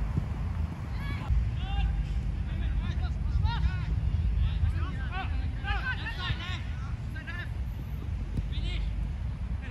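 Young men shout to each other at a distance.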